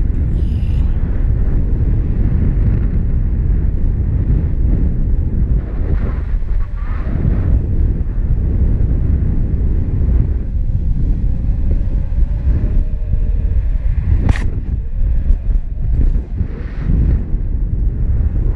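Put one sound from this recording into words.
Strong wind rushes and buffets past the microphone.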